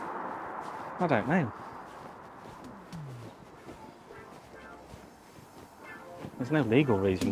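A middle-aged man speaks close to the microphone outdoors, in short phrases.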